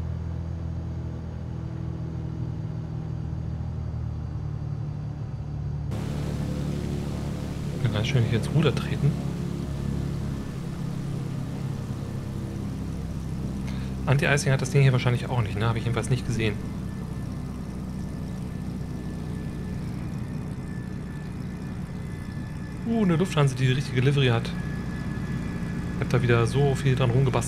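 A small propeller aircraft engine hums steadily.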